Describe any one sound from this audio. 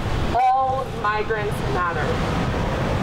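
A woman speaks loudly through a megaphone.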